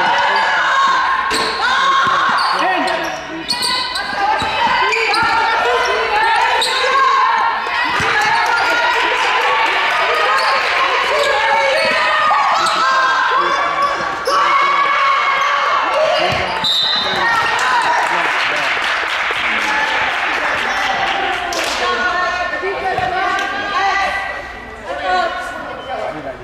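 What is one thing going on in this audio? A basketball bounces on a wooden court in a large echoing hall.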